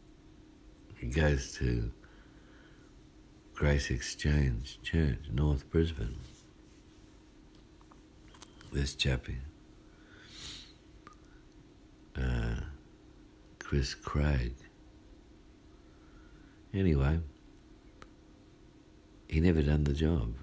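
A man speaks close by in short bursts with pauses.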